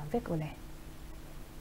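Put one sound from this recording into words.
A young woman speaks calmly into a microphone, then stops.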